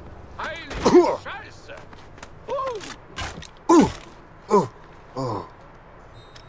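Blows land with heavy thuds during a struggle.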